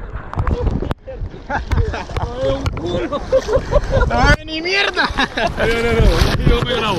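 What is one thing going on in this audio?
A young man talks and laughs with animation close to the microphone.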